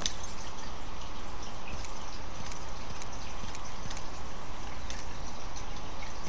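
Soft interface clicks sound as items are picked up.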